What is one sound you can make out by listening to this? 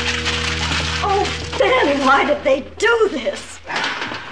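A woman talks excitedly.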